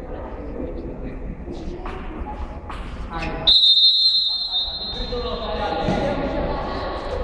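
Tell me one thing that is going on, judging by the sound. Young men call out to each other in a large echoing space.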